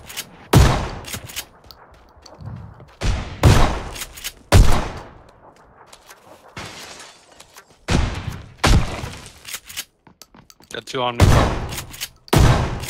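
Shotgun blasts ring out with echoing tails, one after another.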